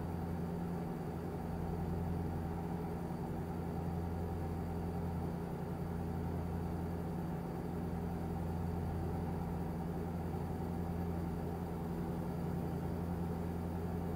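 A truck engine hums steadily as it drives along.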